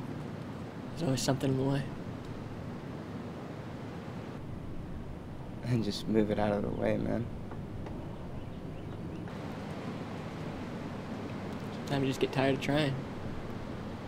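A young man speaks calmly and close by, in short phrases.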